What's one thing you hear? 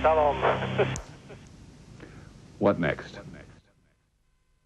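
A man speaks calmly and clearly close to a microphone.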